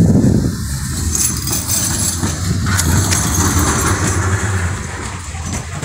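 A tram rolls past close by.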